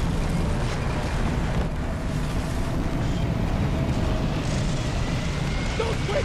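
A strong wind howls with a gusty roar.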